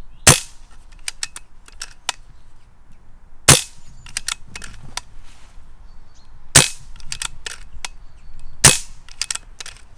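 A rifle's mechanism clicks as it is cocked.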